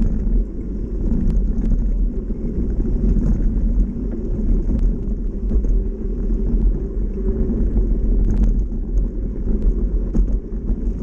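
A bicycle's frame clicks and clatters over bumps.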